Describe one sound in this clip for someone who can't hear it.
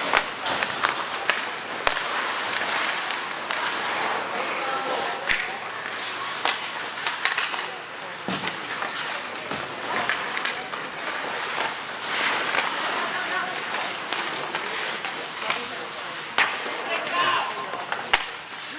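Skate blades scrape and hiss across ice in a large echoing hall.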